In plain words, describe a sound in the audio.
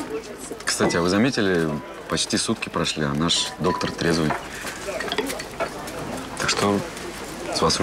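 A young man speaks calmly and teasingly, close by.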